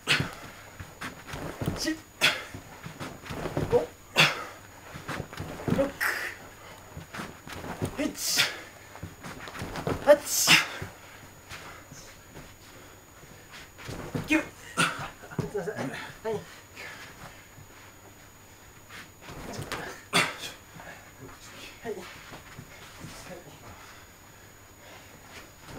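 Bare feet thump and shuffle on a padded floor.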